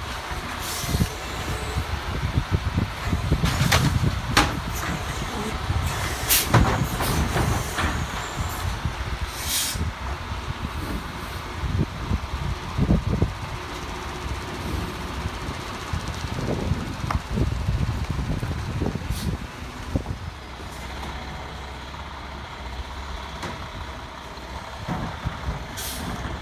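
A garbage truck engine rumbles close by.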